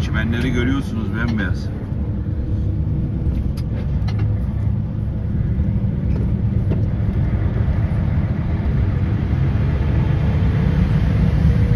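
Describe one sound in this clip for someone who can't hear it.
A vehicle's engine rumbles steadily from inside as it drives along.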